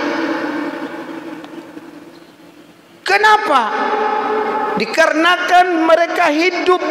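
A middle-aged man preaches with animation through a microphone and loudspeakers, echoing in a large hall.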